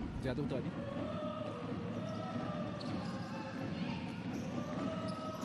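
A crowd murmurs in a large echoing indoor arena.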